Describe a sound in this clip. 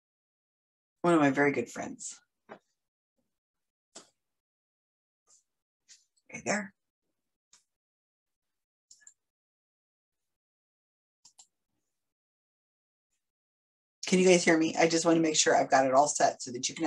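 An older woman speaks calmly and close by, heard through a microphone.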